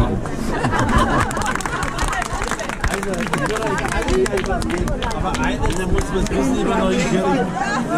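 A crowd of men and women chatter and laugh.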